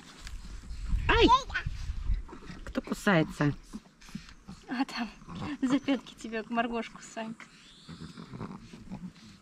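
A toddler babbles in a high voice.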